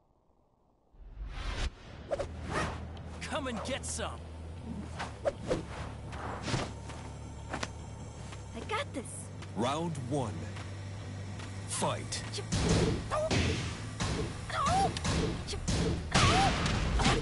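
Dramatic music plays with whooshing and booming effects.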